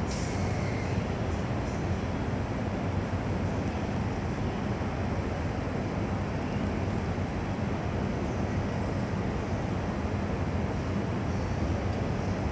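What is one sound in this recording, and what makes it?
A stationary train's engine hums steadily.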